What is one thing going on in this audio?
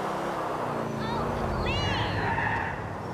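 Car tyres squeal briefly on a turn.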